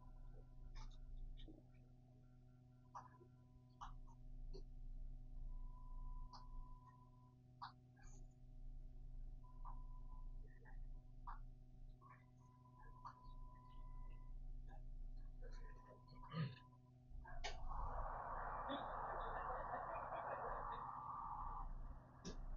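A train hums steadily while standing still.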